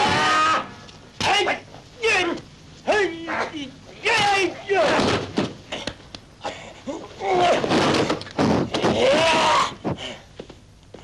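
Young men shout and yell loudly in fierce bursts.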